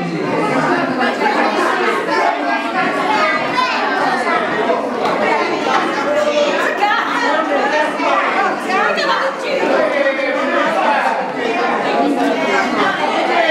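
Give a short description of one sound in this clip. A crowd of adults and children chatter and laugh loudly indoors.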